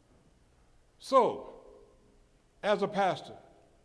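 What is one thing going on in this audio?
A man speaks loudly into a microphone in a large echoing hall.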